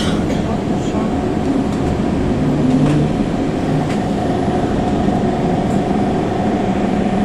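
Tram wheels squeal and click on a curve.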